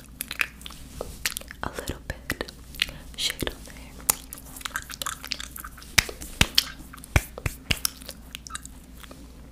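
Hands brush and tap close to a microphone.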